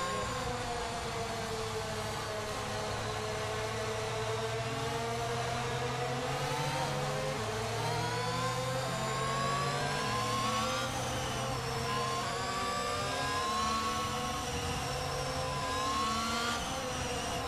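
A racing car engine whines steadily at high revs, rising and falling as gears change.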